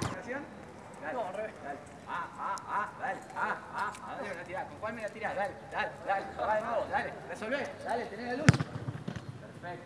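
A young man speaks with animation outdoors.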